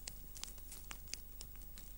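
A fire crackles and pops close by.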